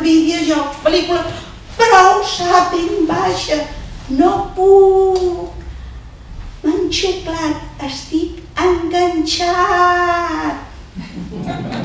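A woman sings into a microphone, her voice ringing in a hall.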